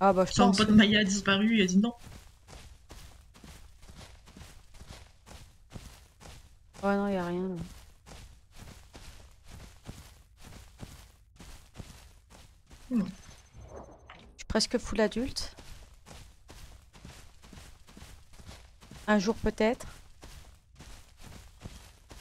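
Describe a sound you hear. A large dinosaur's footsteps thud on grass.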